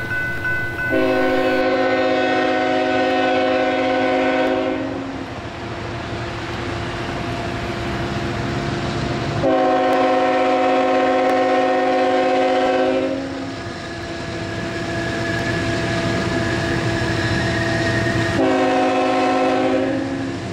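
A train horn sounds in long, loud blasts.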